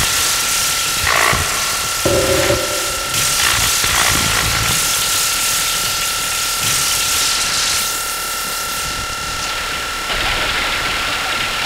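Loud electronic dance music with a heavy beat plays throughout.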